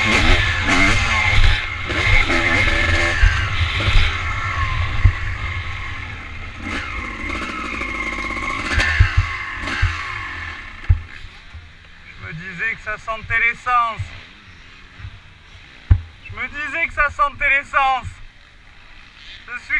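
A dirt bike engine revs loudly up and down, close by.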